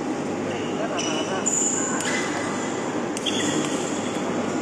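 Shoes squeak sharply on a hard court.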